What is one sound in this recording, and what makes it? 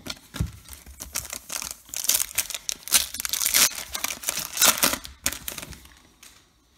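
Foil wrappers crinkle and tear as they are opened.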